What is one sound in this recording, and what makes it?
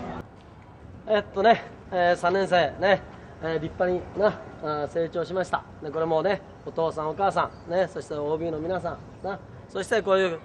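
An older man addresses a group in a firm, carrying voice.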